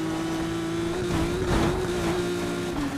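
Debris smashes against a car.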